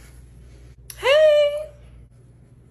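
A young woman cries out in a high, wailing voice.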